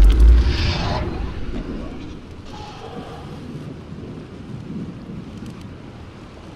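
Fingers tap on a computer keyboard.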